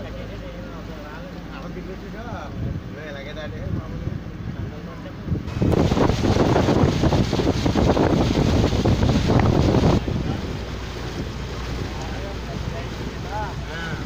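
Floodwater rushes and churns.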